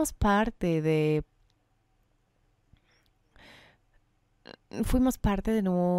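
A woman speaks calmly into a microphone, with pauses.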